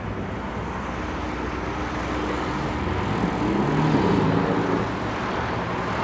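A truck rumbles by close up.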